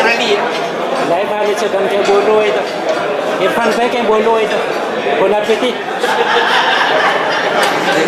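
Cutlery clinks on plates.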